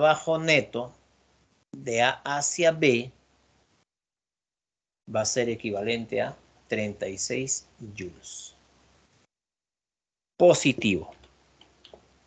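A man speaks calmly through a microphone, explaining in short phrases.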